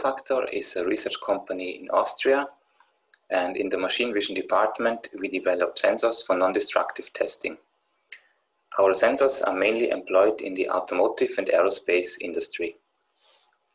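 A man speaks calmly and close to a microphone, as if on an online call.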